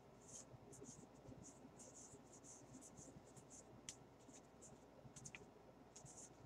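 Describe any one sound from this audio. Glossy cardboard trading cards swish and flick against each other as a stack is thumbed through by hand.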